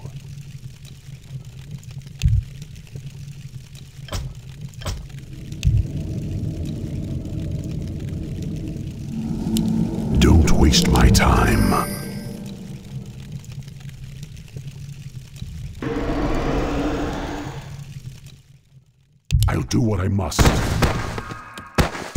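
Game battle sound effects clash and crackle.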